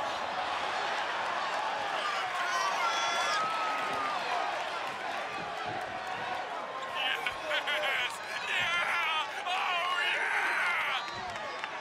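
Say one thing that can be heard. A large arena crowd cheers.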